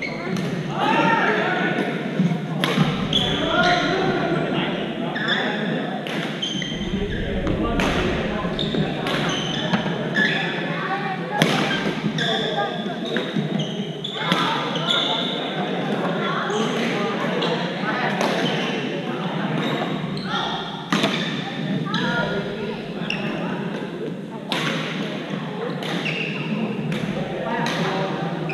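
Several young men call out and chatter across an echoing hall.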